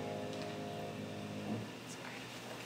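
A piano's last notes ring out and fade away.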